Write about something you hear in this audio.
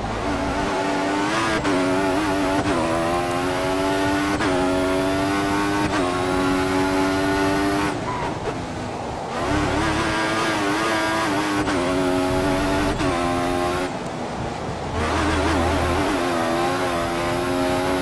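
A racing car engine screams at high revs, rising in pitch through each gear and dropping as it shifts.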